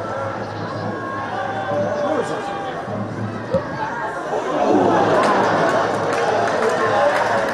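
A crowd in a stadium murmurs and then cheers louder.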